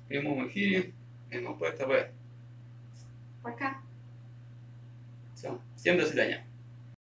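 A young woman speaks cheerfully.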